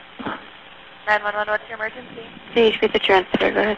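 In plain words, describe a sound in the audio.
A young woman speaks calmly through a headset microphone.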